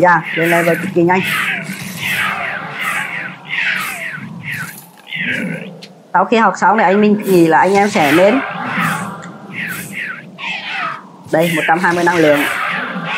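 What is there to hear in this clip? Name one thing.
Fiery spells whoosh and burst repeatedly.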